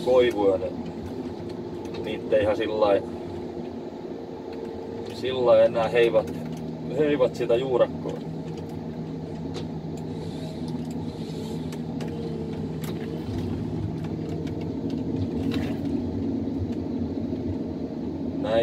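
A diesel forestry harvester engine drones, heard from inside the cab.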